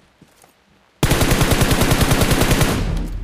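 An automatic rifle fires a rapid, loud burst.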